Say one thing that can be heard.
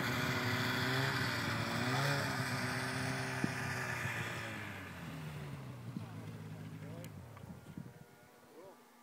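A snowmobile engine revs and pulls away, fading into the distance.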